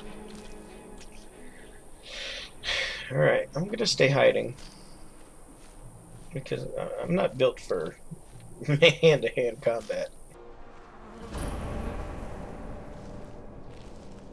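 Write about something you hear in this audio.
Footsteps rustle through dry grass.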